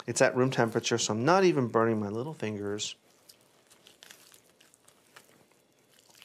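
Hands pull apart cooked chicken meat with soft tearing sounds.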